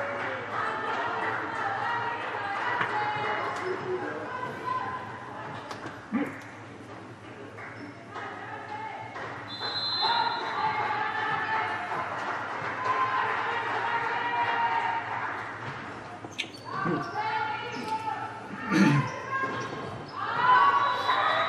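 Young women call out and shout to each other in a large echoing hall.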